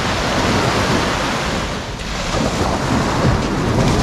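Small waves wash up onto a sandy shore.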